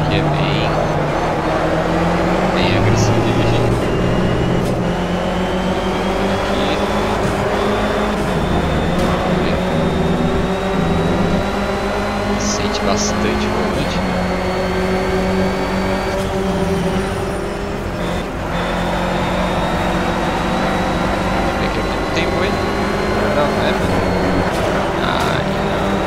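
A four-cylinder racing car engine revs hard, accelerating up through the gears.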